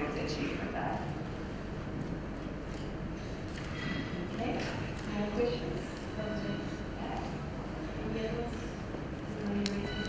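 A young woman speaks calmly through a microphone in a large hall.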